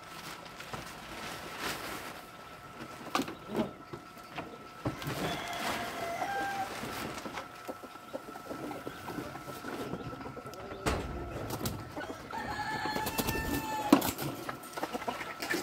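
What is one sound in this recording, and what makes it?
Objects clatter and knock as they are moved about.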